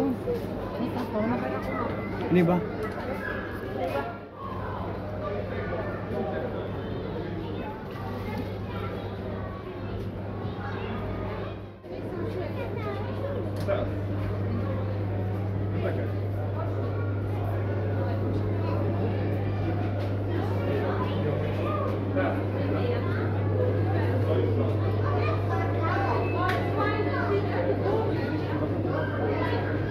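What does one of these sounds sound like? A crowd of adults and children chatter in a large echoing hall.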